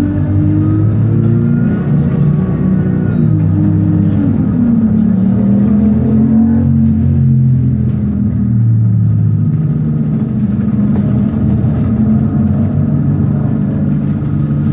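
A car engine hums steadily as the car drives along, with the pitch rising and falling.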